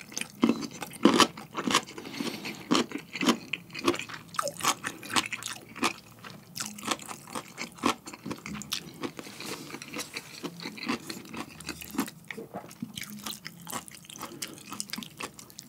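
A young man chews and smacks his lips loudly, close to a microphone.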